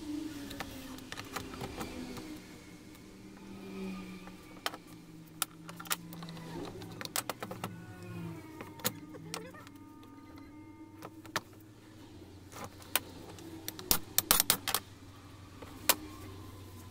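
Metal parts clink and knock against each other as they are handled.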